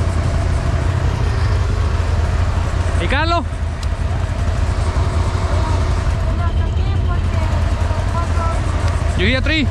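Quad bike engines idle with a steady low rumble close by.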